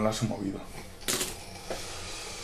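Dice clatter onto a tabletop.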